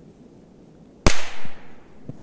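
A firecracker bangs loudly nearby.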